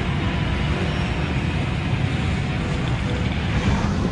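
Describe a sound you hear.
Newspaper pages rustle.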